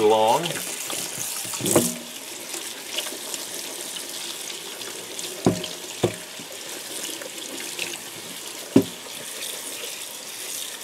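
Tap water runs and splashes into a metal sink.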